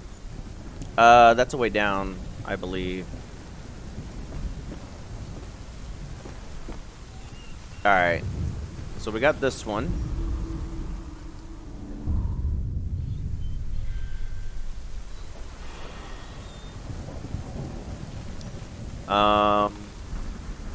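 A man speaks briefly into a microphone, close by.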